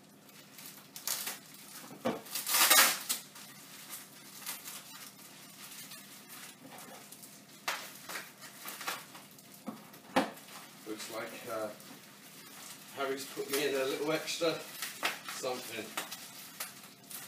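A plastic bag crinkles and rustles in a man's hands.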